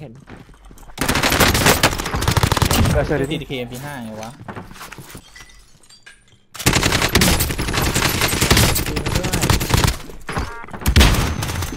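Rapid gunfire bursts in loud, sharp volleys.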